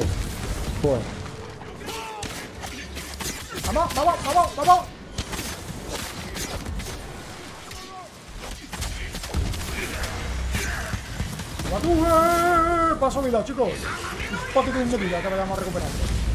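Swords clash and clang in a game fight.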